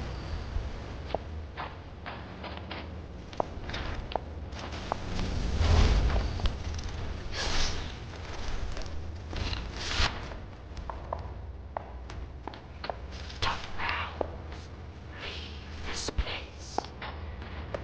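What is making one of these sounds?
A magic flame crackles softly.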